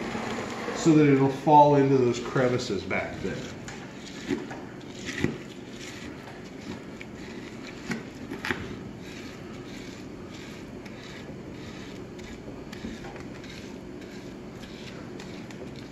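A metal tool scrapes and taps against brittle brick.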